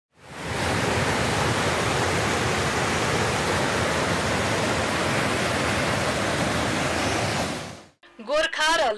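A mountain stream rushes loudly over rocks.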